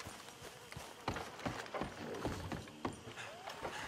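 Footsteps thud on hollow wooden planks.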